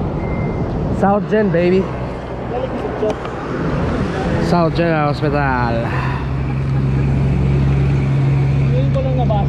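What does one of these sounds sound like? A man talks casually nearby, outdoors.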